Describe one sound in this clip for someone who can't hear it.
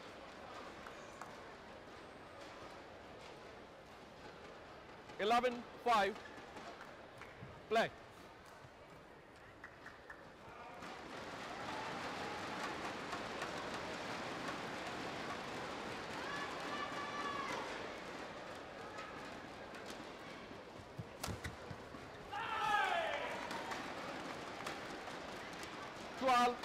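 A large crowd murmurs in an echoing hall.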